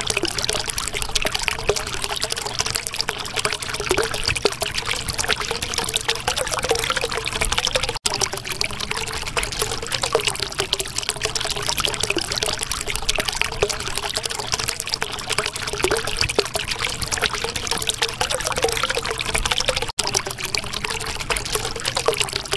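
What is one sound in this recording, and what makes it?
Water bubbles and gurgles steadily.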